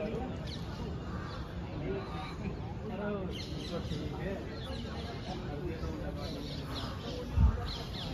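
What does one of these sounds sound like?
Young men talk and call out nearby outdoors.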